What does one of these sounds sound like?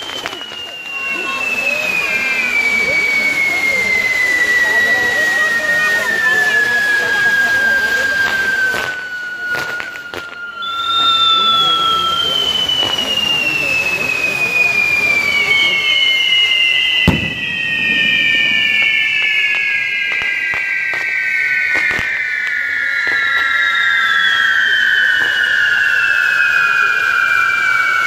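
Spinning fireworks whistle loudly, each whistle slowly falling in pitch.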